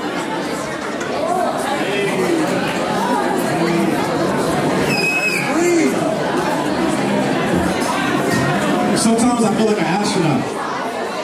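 A young man raps loudly into a microphone over a loudspeaker.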